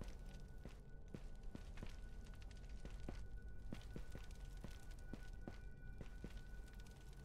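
Footsteps tread slowly on a stone floor.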